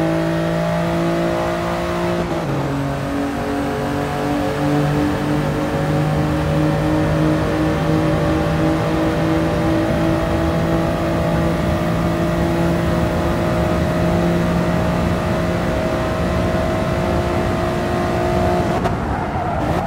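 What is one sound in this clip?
A racing car engine roars at high revs, shifting up and climbing steadily in pitch.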